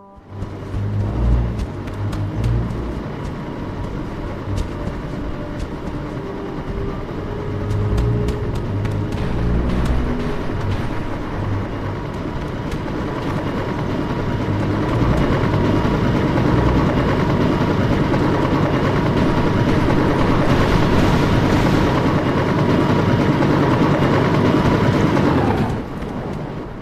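Helicopter rotors thump overhead.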